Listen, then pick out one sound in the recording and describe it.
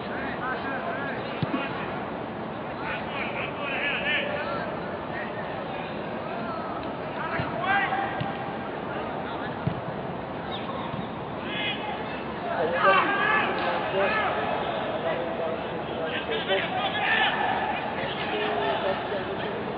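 Men shout to each other across an open field, heard from a distance.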